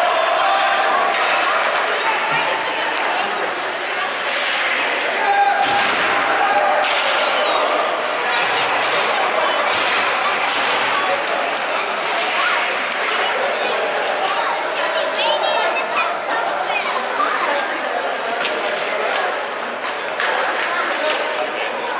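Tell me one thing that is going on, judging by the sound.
Children's voices chatter and call out in a large echoing rink.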